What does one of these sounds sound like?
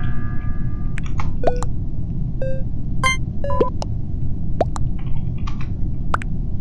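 Short game chimes and pops sound again and again.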